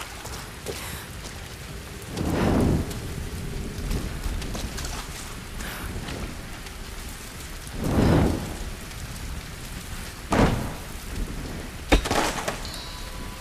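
Flames crackle softly.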